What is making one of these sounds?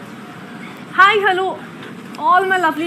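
A young woman speaks brightly, close by.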